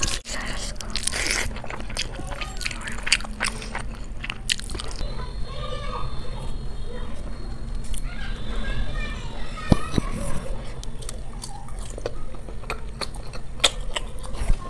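A woman chews food loudly and smacks her lips up close.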